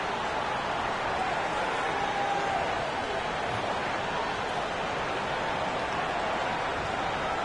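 A large crowd murmurs and roars steadily in a big echoing arena.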